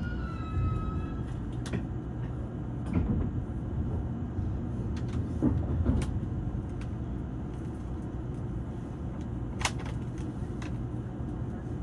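A stopped train hums steadily while idling.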